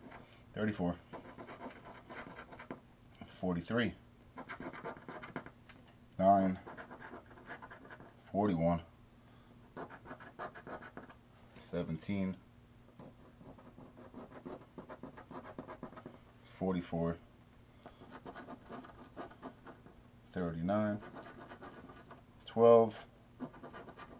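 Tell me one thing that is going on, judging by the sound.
A coin scratches across a card in short, quick strokes.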